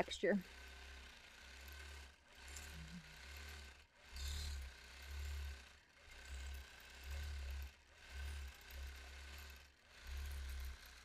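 A sewing machine hums as it stitches, rising and falling in short bursts.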